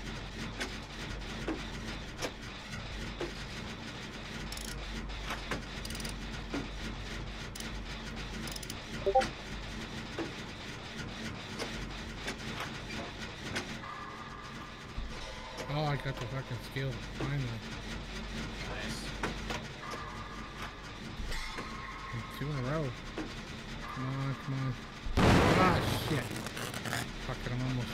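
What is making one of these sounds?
Metal parts of a machine clank and rattle as someone tinkers with them.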